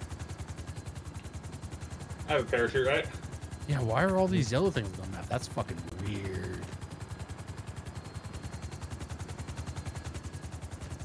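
Helicopter rotor blades thump rapidly and steadily.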